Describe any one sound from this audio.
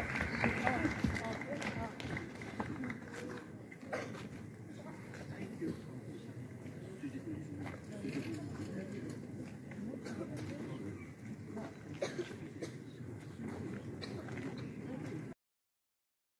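Men and women chatter in a lively crowd nearby.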